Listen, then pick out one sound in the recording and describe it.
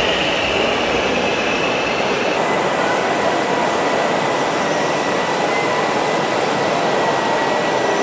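A small model tractor motor whines steadily as it drives along.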